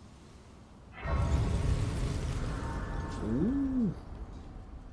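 A game chime rings with a whooshing swell.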